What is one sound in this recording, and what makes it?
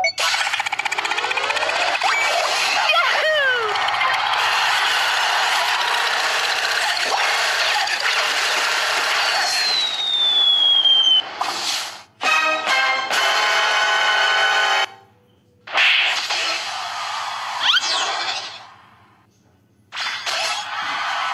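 Video game attack effects whoosh and zap.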